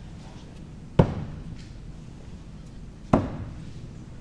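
Axes thud hard into wooden targets.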